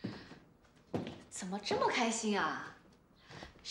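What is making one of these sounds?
A young woman speaks cheerfully and with animation.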